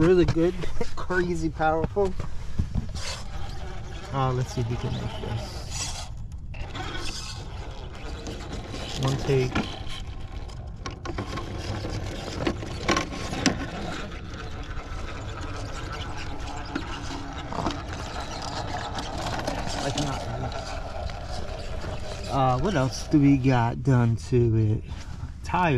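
A small electric motor whines as a toy truck crawls.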